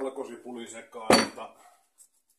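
A heavy stone mortar is set down with a thud.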